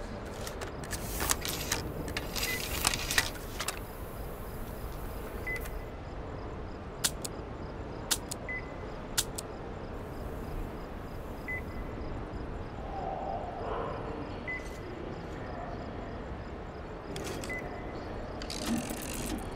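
Metal parts of a gun click and clatter as it is handled.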